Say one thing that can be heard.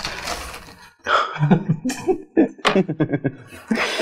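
A plastic case slides and taps on a wooden board.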